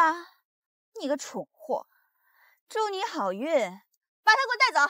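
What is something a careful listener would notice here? A young woman speaks sharply and mockingly, close by.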